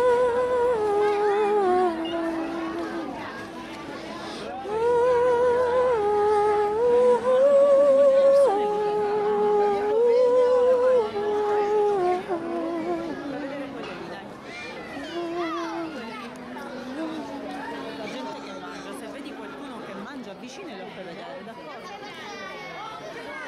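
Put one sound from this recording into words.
A crowd of people talks and moves about outdoors.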